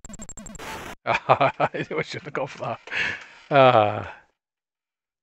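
A short electronic tune plays with falling, bleeping notes.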